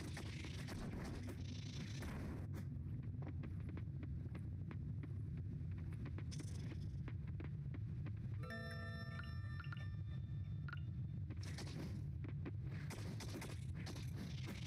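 A pickaxe strikes rock in quick knocks.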